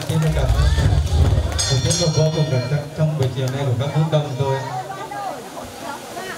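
Music plays loudly over loudspeakers, then stops.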